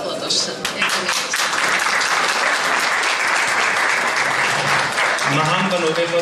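A crowd claps and cheers in a large hall.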